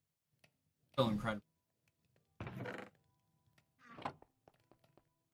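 A young man speaks casually into a close microphone in short bursts.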